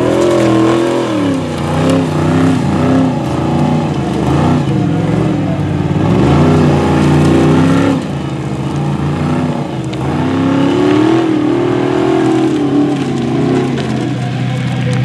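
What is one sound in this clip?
A small motor whines and revs up and down.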